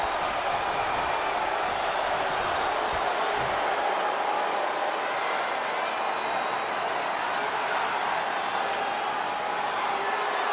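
A large crowd cheers and murmurs steadily in a big echoing arena.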